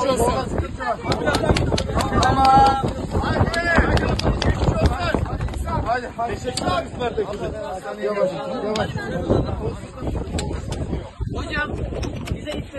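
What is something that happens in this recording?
A crowd of people claps and cheers.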